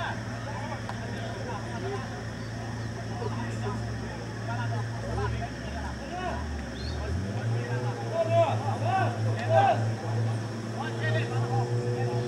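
A group of people talk and call out outdoors at a distance.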